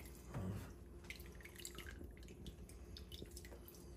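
Liquid drips and trickles into a pot.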